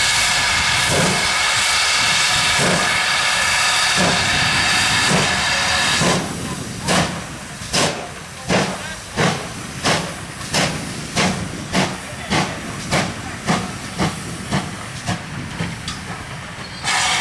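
A steam locomotive chuffs in strong, rhythmic puffs.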